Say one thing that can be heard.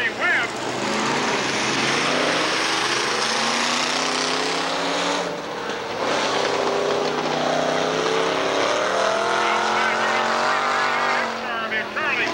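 Engines rise and fall in pitch as cars pass close by.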